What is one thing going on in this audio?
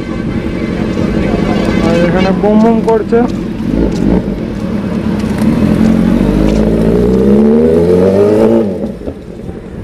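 A motorcycle engine revs loudly, rising and falling in pitch.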